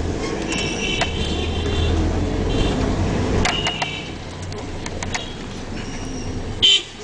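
Motorbike engines hum and rumble as they pass close by.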